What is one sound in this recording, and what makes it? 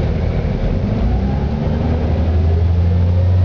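A bus engine revs up, its pitch rising near the end.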